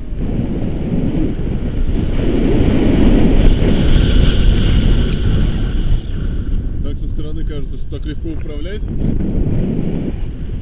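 Wind rushes over a microphone.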